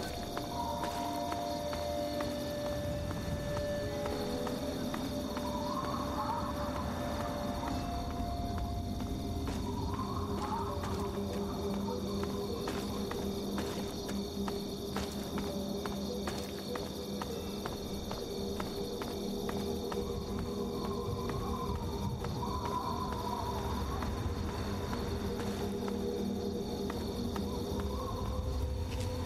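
Footsteps crunch steadily on a rough dirt path.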